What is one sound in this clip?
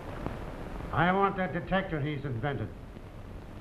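A second man answers calmly nearby.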